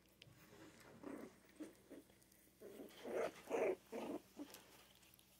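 Young puppies whimper and squeak softly close by.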